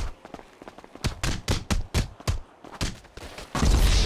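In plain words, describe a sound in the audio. Sharp blows and shots crack in quick succession.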